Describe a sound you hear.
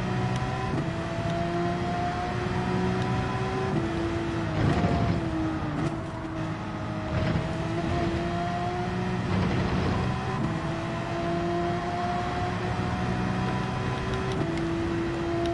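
A racing car engine roars at high revs, shifting gears up and down.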